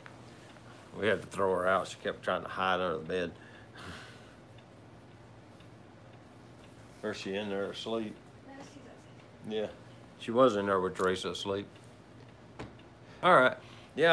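A middle-aged man talks calmly close by, in short bursts with pauses.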